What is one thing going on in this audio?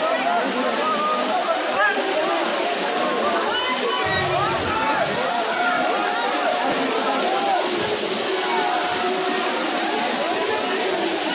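A crowd of men and women chatter and call out nearby.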